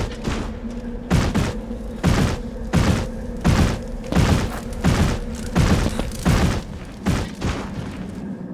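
Heavy footsteps thud in a quick, steady rhythm.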